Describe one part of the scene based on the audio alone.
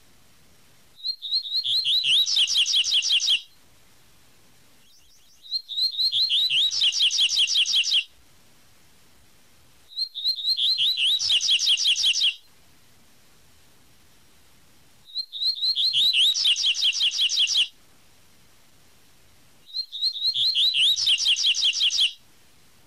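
A small bird sings a quick, repeated trilling song in bursts, with short pauses between them.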